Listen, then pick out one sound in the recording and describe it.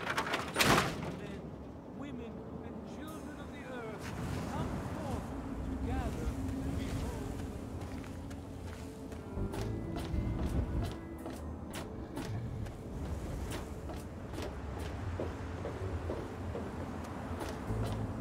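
Footsteps clank on metal walkways.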